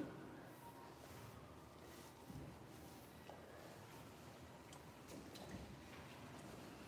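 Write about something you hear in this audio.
Hands rub and scrub a wet dog's fur.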